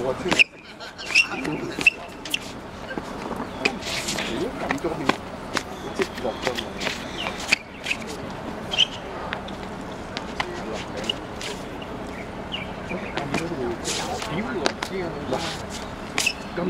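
Feet stamp and scuff on a hard court.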